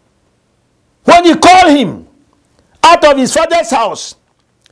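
A man preaches with emphasis into a microphone, in short bursts.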